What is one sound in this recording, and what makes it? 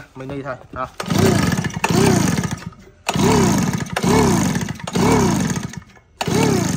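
A small engine's pull starter is yanked over and over, cranking the engine in short rising and falling bursts.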